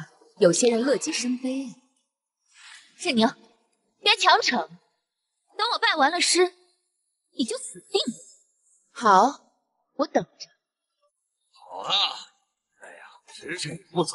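A young woman speaks with a mocking tone.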